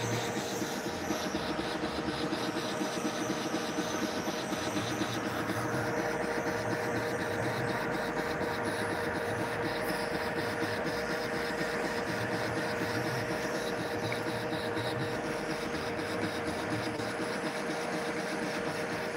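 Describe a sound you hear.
A lathe spins with a steady mechanical hum and rattle.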